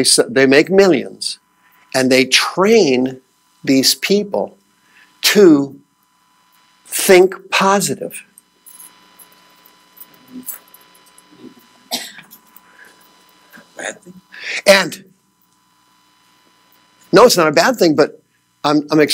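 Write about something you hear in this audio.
A man lectures with animation, pausing often.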